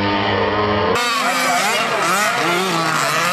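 Small racing car engines rev, rising and falling in pitch.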